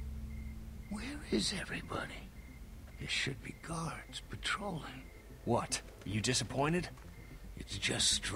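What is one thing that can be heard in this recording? An elderly man speaks quietly and urgently.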